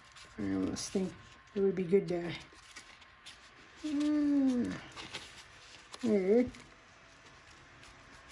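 Stiff paper pages rustle and flap as they are turned by hand.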